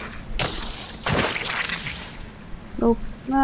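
A futuristic grappling beam fires with a loud whooshing rush.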